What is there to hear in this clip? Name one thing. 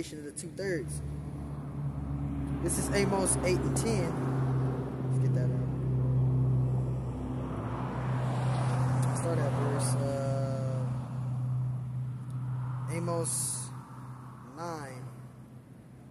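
A middle-aged man talks casually nearby.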